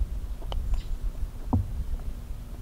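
A golf putter taps a ball.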